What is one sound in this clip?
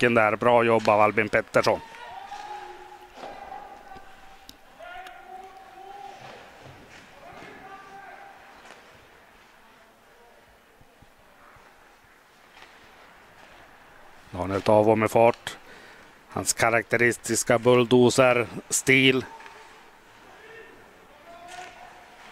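Skate blades scrape and hiss across ice in a large echoing arena.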